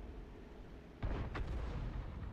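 A tank cannon fires with a deep boom.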